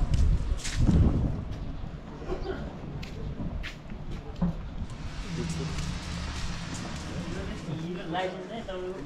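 Footsteps tread on a stone path outdoors.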